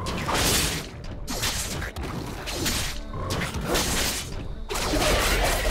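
Magic spell effects whoosh and crackle in a video game.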